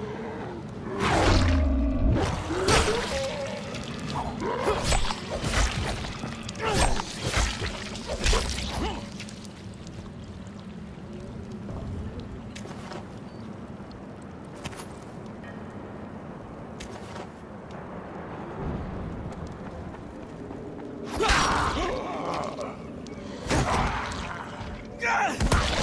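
Zombies growl and groan.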